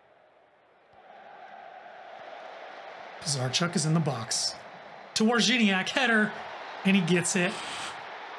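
A stadium crowd murmurs and cheers.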